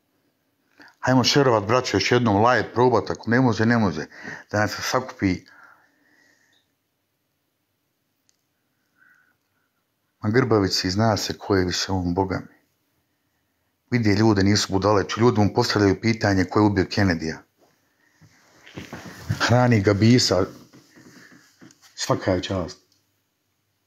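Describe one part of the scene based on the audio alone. A man talks with animation close to a phone's microphone.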